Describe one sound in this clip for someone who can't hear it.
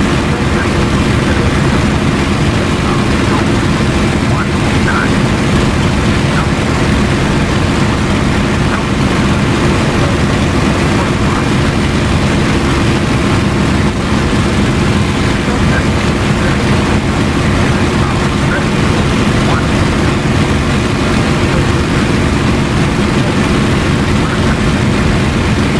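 Wind rushes steadily past the canopy.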